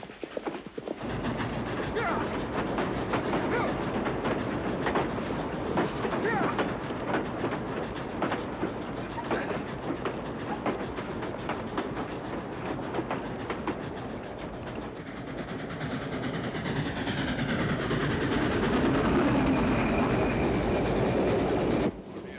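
A steam train rumbles and clatters along the tracks.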